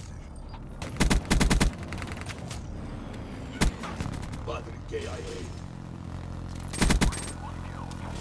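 Gunshots crack in short, sharp bursts.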